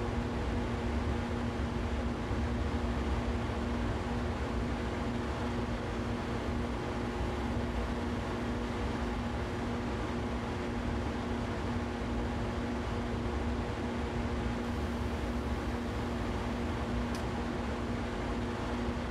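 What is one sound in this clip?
An electric train hums steadily as it runs along the rails.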